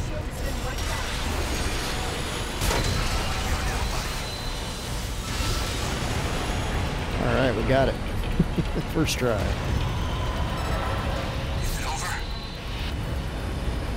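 Heavy explosions boom and rumble loudly.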